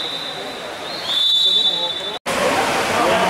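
A referee's whistle blows a long shrill blast.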